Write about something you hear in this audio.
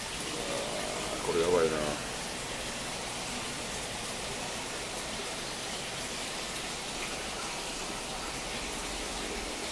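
Water bubbles steadily from an aquarium air pump.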